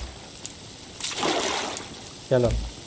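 Water splashes as something drops into it.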